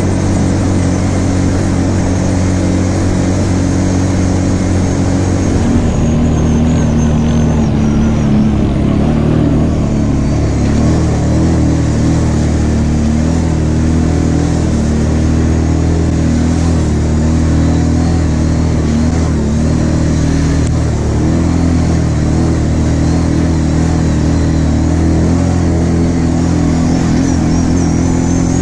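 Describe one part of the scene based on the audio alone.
A quad bike engine drones steadily up close.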